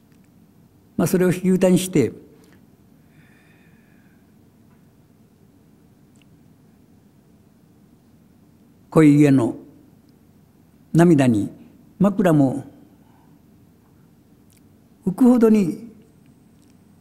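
An elderly man reads aloud slowly into a microphone, with long pauses.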